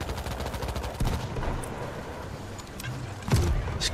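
A mortar shell booms in a video game.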